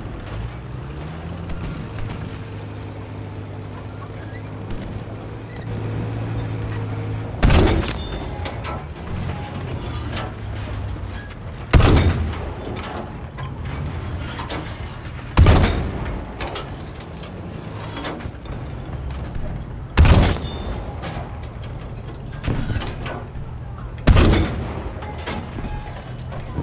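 A tank engine rumbles and clanks steadily.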